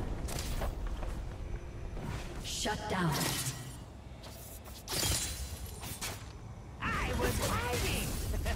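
Magic spells whoosh and burst in a fast game battle.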